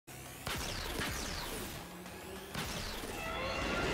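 Sharp energy blasts fire in quick bursts.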